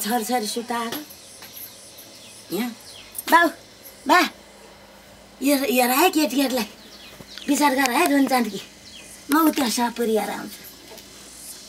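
An elderly woman speaks softly and with feeling, close by.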